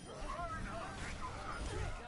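Game gunfire rattles.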